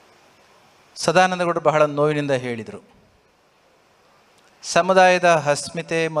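A man speaks into a microphone in a slow, chanting tone, heard through loudspeakers.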